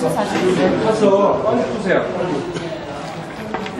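Water pours into a metal bowl of flour.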